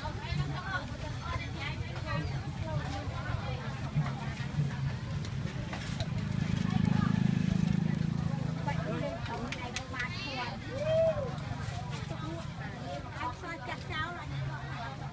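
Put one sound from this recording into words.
Fish sizzles softly over hot charcoal.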